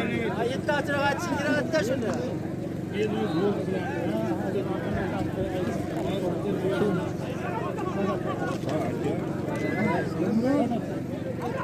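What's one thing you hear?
A large crowd of men shouts and chatters outdoors.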